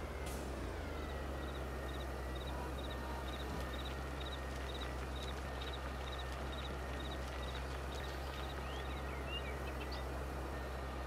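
A machine ticks in a quick, even rhythm.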